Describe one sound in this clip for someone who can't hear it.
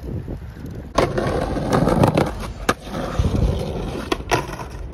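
Skateboard wheels roll and rumble over pavement outdoors.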